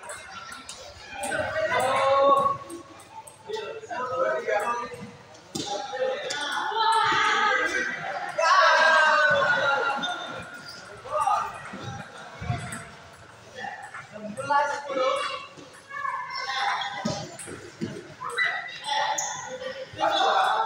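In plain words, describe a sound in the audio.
A table tennis ball clicks against paddles and bounces on the table in a rally.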